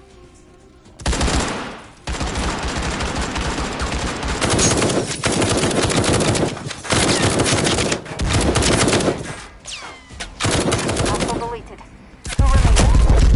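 A rifle fires rapid, loud bursts of shots.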